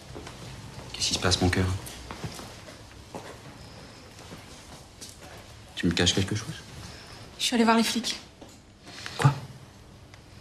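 A young woman speaks quietly close by.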